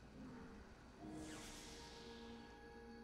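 A video game plays a swelling magical whoosh.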